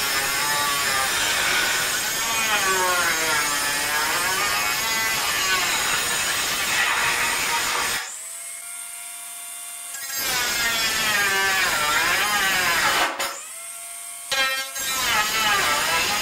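A small power sander whines against a hard surface, its pitch wavering as it is pressed and moved.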